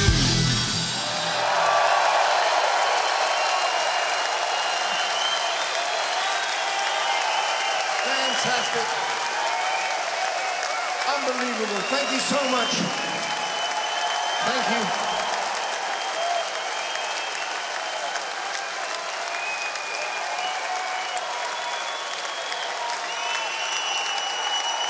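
A large crowd cheers and whistles in a big echoing hall.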